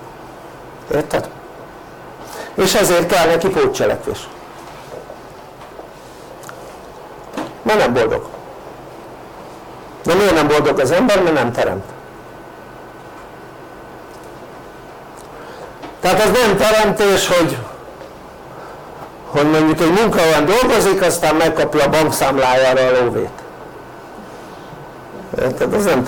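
An elderly man speaks calmly and clearly, in short bursts with pauses.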